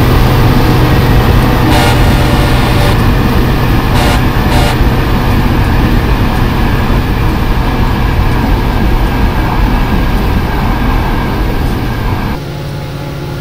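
A passenger train rumbles loudly past on the next track.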